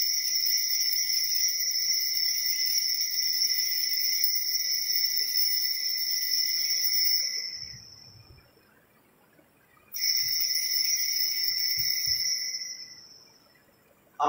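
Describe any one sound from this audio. Small altar bells ring in a steady jingle.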